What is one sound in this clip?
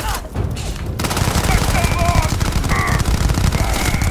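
A laser rifle fires sharp bursts.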